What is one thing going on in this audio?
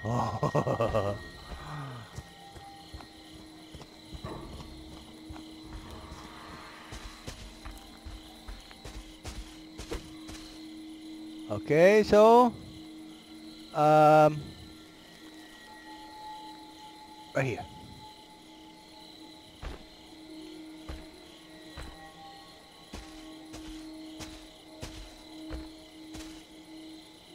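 Heavy footsteps crunch slowly over dry leaves and dirt.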